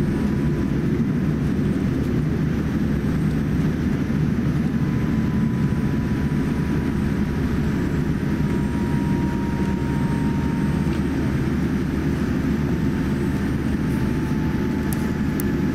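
An airliner rumbles as it taxis on the ground.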